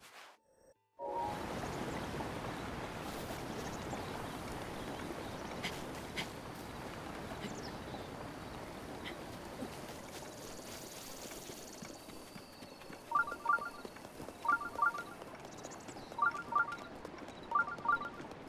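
Wind blows steadily and slowly eases off.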